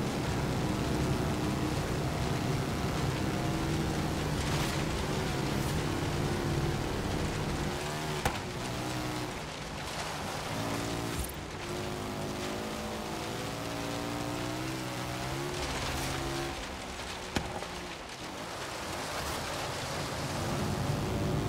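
Tyres crunch over a dirt track.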